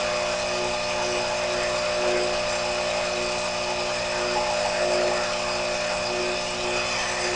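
A small metal lathe runs with a steady hum and whine.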